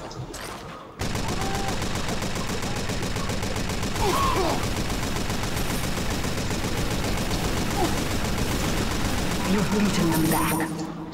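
A minigun fires a rapid, steady stream of bullets.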